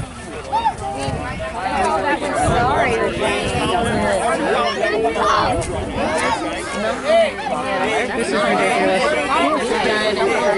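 A crowd of children chatters and shouts nearby.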